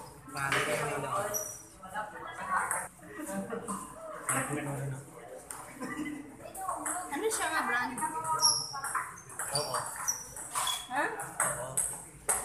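A ping pong ball clicks back and forth on paddles and a table.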